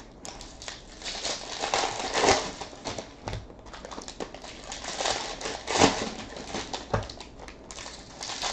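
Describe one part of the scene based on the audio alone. Plastic wrapping crinkles and rustles as hands tear open a pack.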